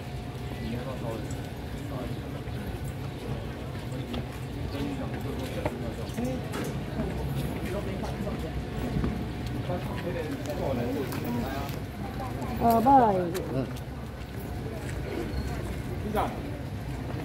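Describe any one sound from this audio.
Footsteps shuffle on pavement.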